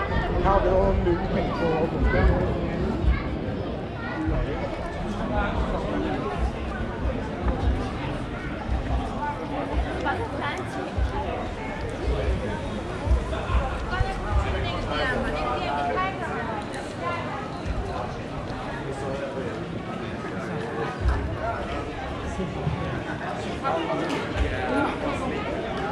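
Men talk with each other nearby.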